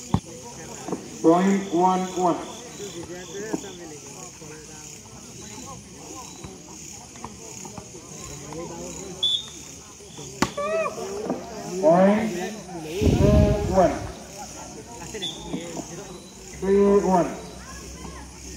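Young men shout and call out nearby, outdoors.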